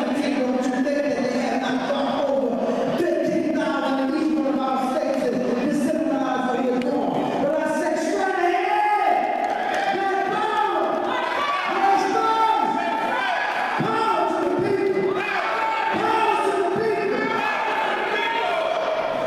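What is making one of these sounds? A middle-aged woman sings forcefully through a microphone.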